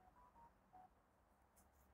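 A phone notification chimes briefly.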